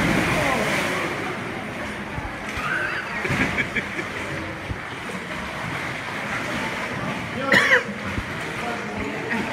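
Water splashes and laps gently in an echoing cave.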